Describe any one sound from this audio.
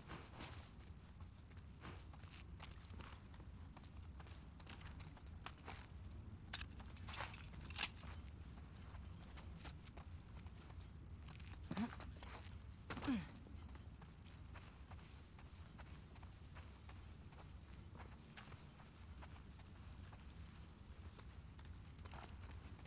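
Footsteps patter softly on a hard floor.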